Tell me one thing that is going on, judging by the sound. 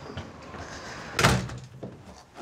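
A door bumps as a hand pushes against it.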